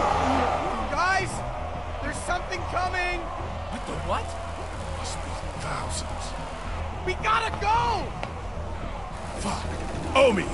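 A young man speaks uneasily.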